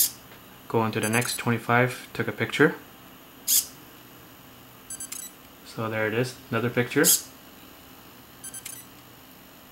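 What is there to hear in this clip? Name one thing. A small servo motor buzzes briefly as it turns, several times.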